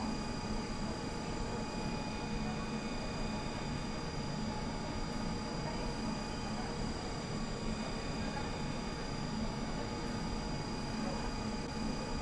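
A tram's motor hums steadily with a low rumble.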